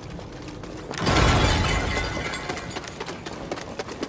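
A loud rumbling crash bursts out and dies away.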